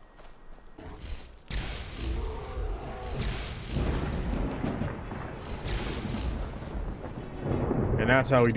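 A magic spell crackles and hums steadily.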